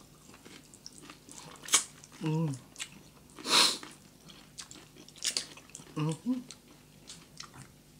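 People chew food noisily with smacking sounds.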